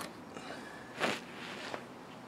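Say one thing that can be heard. A rubber hose pops loose from a pipe.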